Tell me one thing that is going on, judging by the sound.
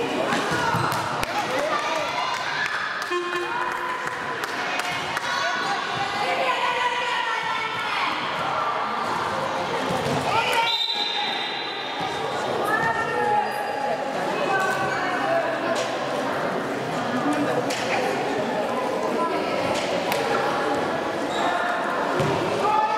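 Young girls shout and call out to each other in a large echoing hall.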